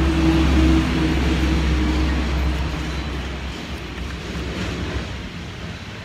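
A metal blade scrapes against a sharpening stone.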